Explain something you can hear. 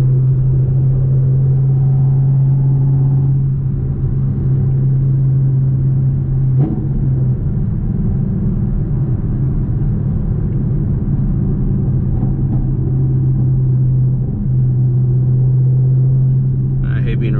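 A car engine hums steadily from inside the cabin while driving.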